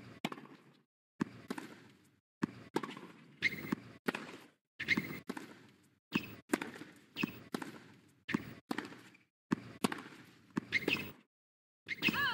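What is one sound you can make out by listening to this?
A tennis ball is struck back and forth with sharp pops that echo.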